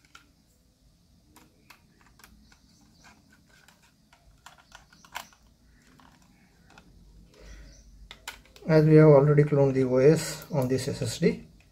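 A small screwdriver scrapes and ticks against metal screws.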